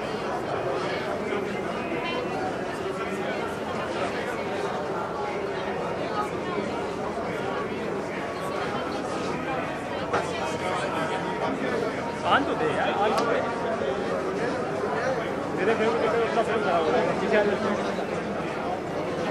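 A crowd of people chatter all around.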